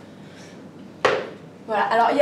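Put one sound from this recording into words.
A dumbbell thuds onto a hard floor.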